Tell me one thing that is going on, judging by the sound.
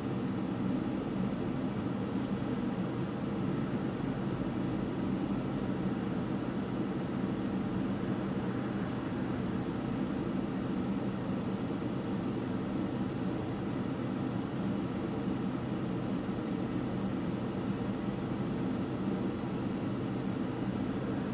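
Traffic passes by on the street.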